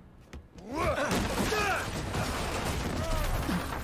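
Wooden planks clatter as they fall.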